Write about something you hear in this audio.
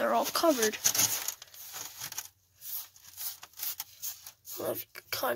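A hand rubs and scrapes across a rough surface.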